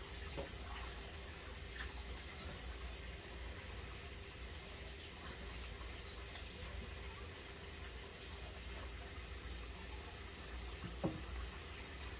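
Dishes clink and knock softly in a sink.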